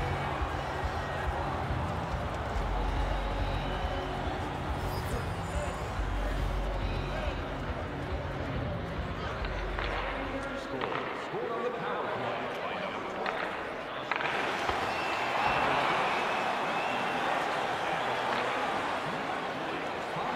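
A large arena crowd murmurs and cheers steadily, swelling louder near the end.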